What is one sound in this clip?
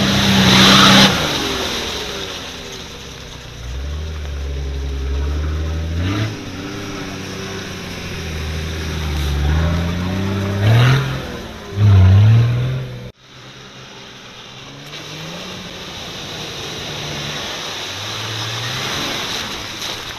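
Tyres churn and splash through deep mud and water.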